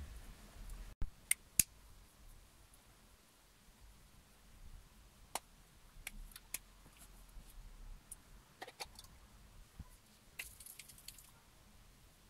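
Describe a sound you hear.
Hands rustle and pull through thick hair close by.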